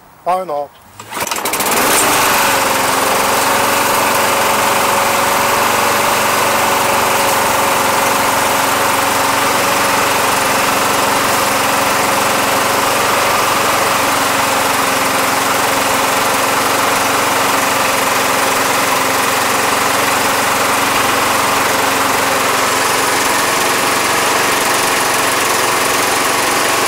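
A lawn mower engine sputters to life and runs with a steady loud drone.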